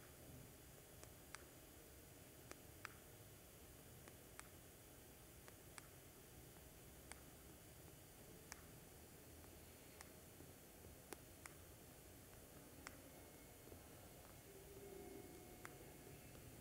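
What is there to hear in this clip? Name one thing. A paintbrush taps and clicks lightly against paper and paint pots.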